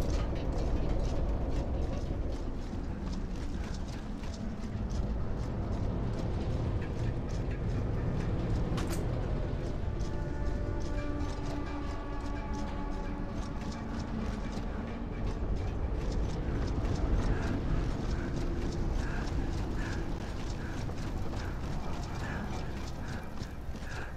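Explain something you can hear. Heavy boots thud quickly on hard ground as a soldier runs.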